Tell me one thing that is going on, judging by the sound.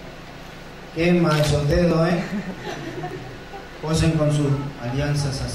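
A young woman laughs loudly nearby.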